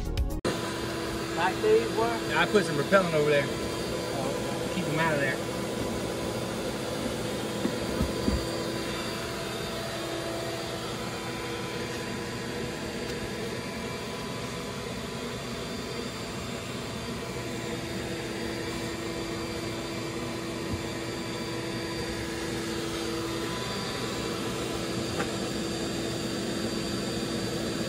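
Many bees buzz in a steady, close drone.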